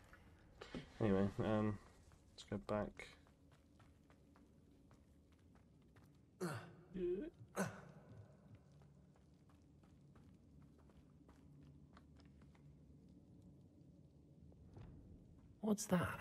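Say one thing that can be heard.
Quick footsteps run over a stone floor.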